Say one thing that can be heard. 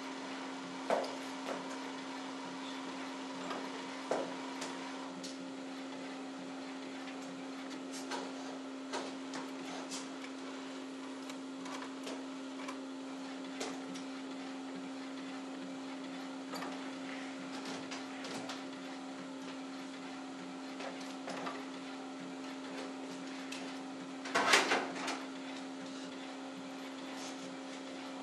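A printer clicks and ticks now and then while feeding paper.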